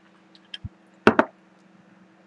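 A glass knocks against a tabletop.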